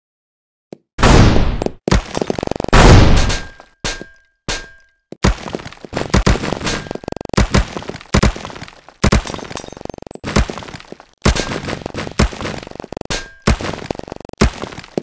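Blocks crash and tumble in a game with loud bursts of smashing.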